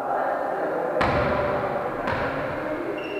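A volleyball is hit with a hand and slaps in an echoing hall.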